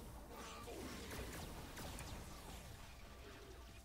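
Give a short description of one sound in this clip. A beam of energy hums and roars.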